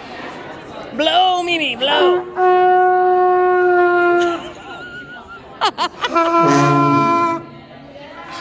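A young girl blows long, brassy notes on a trumpet, close by.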